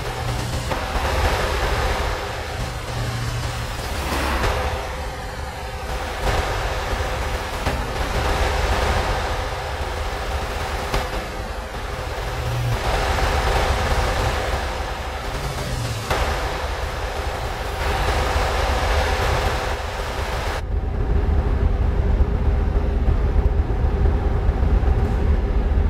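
A heavy truck engine hums and rumbles steadily.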